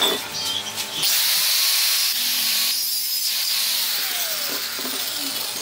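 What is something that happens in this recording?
An angle grinder whirs loudly at high speed, then winds down.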